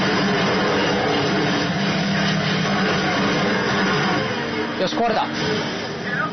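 Explosions boom and rumble in a loud battle.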